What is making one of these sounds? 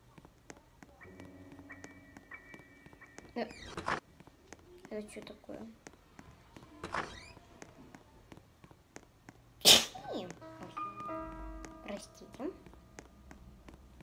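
A young girl talks close to a microphone.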